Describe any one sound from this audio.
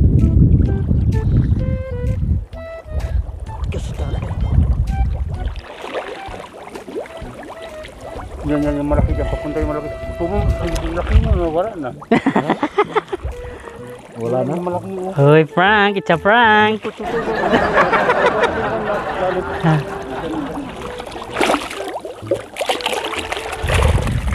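Water splashes and sloshes around a man wading.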